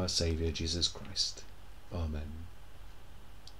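An older man speaks calmly, close to a microphone, as if on an online call.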